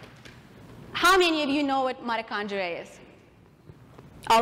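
A young woman speaks clearly and with animation through a microphone in a large room.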